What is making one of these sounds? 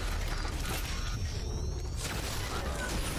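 An energy beam crackles and hums briefly.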